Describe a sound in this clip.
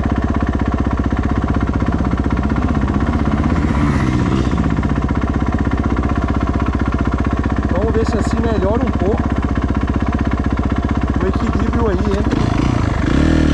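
A dirt bike engine idles with a steady, rapid chugging.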